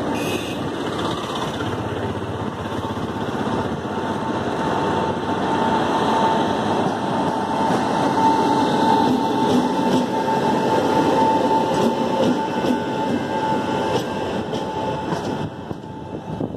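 An electric locomotive hums with a steady whine as it passes.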